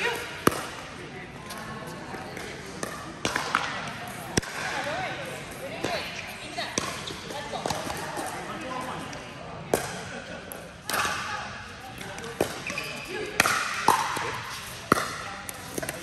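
The sounds echo in a large hall.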